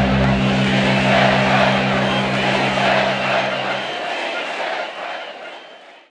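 A huge crowd chants and cheers outdoors, then fades away.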